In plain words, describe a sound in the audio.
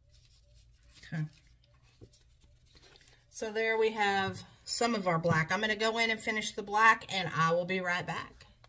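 Paper rustles as a stencil sheet is peeled up.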